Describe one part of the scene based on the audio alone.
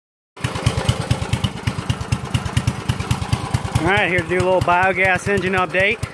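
A small engine chugs loudly with a fast, steady beat.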